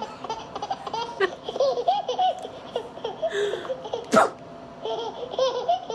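A baby squeals and babbles.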